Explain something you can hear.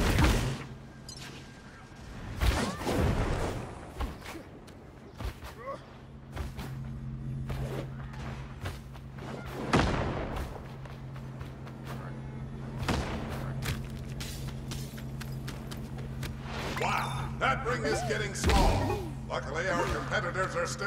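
Game sound effects whoosh and clatter.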